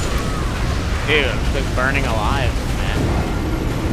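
A man exclaims loudly into a close microphone.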